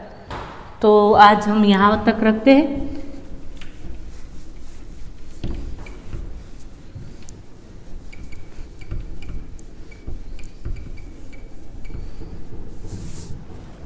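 A duster rubs and squeaks across a whiteboard.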